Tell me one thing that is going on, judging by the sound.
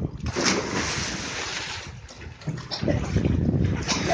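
Water splashes as a boy swims.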